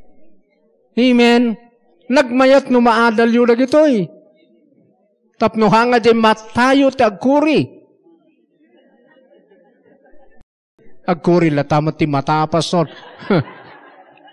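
A middle-aged man preaches with animation into a microphone, heard through a loudspeaker, in bursts with pauses.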